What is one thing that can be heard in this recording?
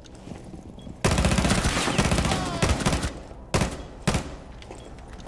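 A rifle fires rapid bursts of loud shots close by.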